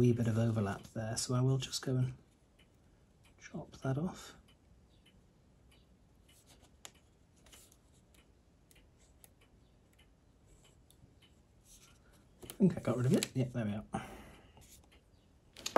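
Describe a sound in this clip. A metal tool taps and scrapes lightly on paper.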